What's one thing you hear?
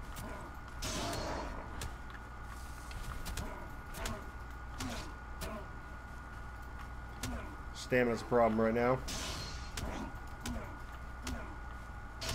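Weapon blows strike a creature with sharp, repeated thuds.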